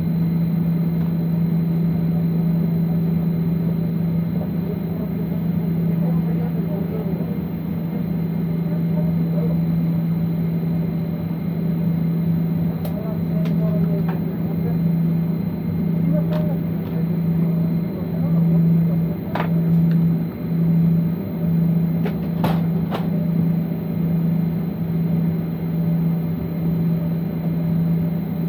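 An aircraft engine hums steadily from inside a cabin as the plane taxis.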